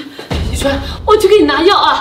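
An older woman speaks pleadingly.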